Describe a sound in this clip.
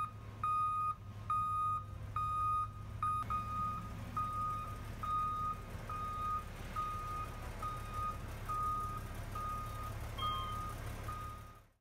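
A large diesel engine idles with a low rumble.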